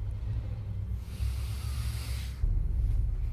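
A man snorts sharply through his nose.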